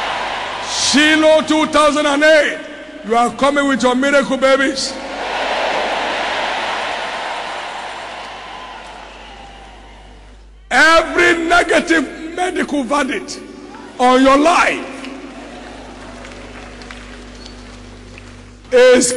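A man preaches forcefully into a microphone, with pauses between phrases.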